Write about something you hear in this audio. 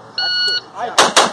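A pistol fires sharply.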